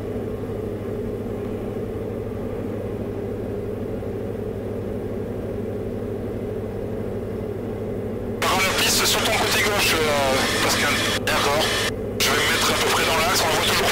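A light aircraft engine drones steadily inside the cockpit.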